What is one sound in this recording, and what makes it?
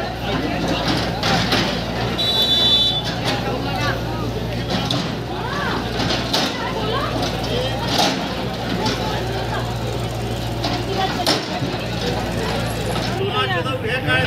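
A digger's engine rumbles steadily.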